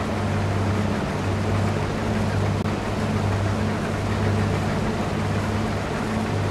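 A combine harvester engine drones steadily at low speed.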